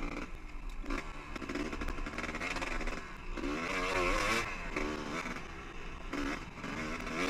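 Tyres crunch over loose rocks and gravel.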